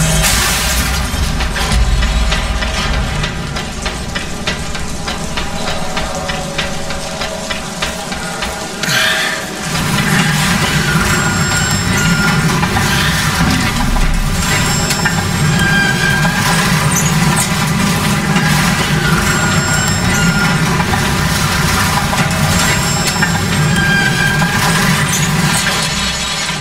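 A rail cart rumbles along metal tracks.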